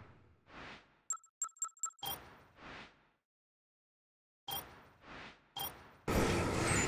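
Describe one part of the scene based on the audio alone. Menu beeps click softly.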